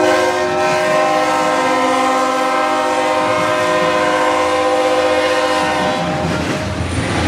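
A train horn blares loudly and steadily, then stops.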